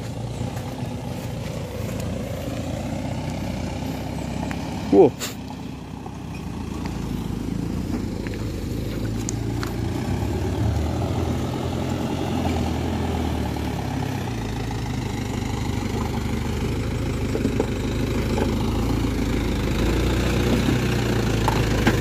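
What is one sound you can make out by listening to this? A truck engine rumbles as the truck slowly approaches.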